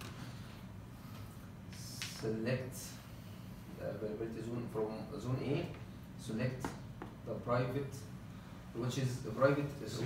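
A man speaks calmly nearby, explaining something.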